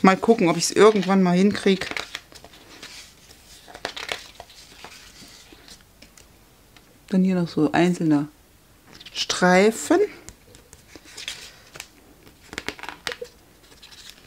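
Paper pages rustle softly as they are flipped.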